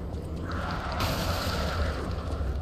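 Creatures lunge and attack with a burst of noise.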